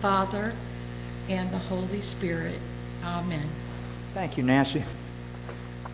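A woman speaks softly into a microphone.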